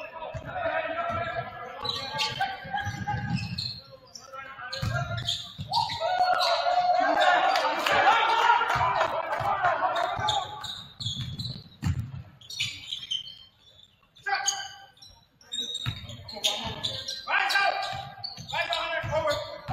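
A basketball bounces on a hard wooden floor.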